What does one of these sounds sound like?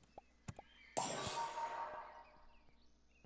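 A short game sound effect plays as a piece moves into place.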